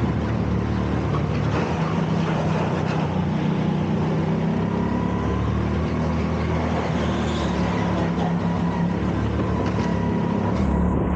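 Kart tyres squeal on a smooth floor.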